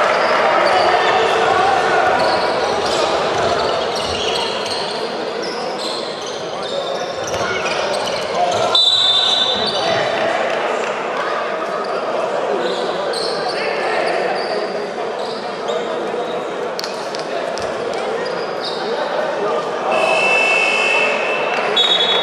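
A crowd murmurs and cheers throughout a large echoing hall.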